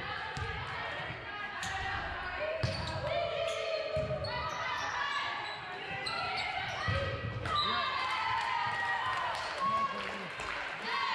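Young women call out and cheer loudly in a large echoing gym.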